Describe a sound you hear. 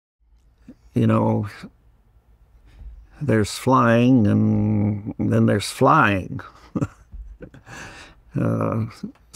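An elderly man speaks calmly and with animation close to a microphone.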